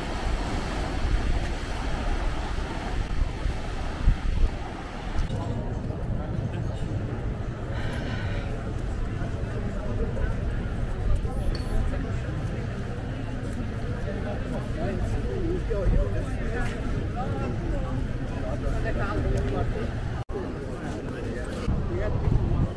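Footsteps tread on a paved walkway.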